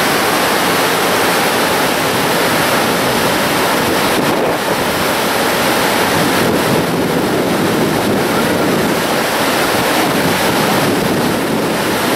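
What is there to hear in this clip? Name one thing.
River rapids roar and rush.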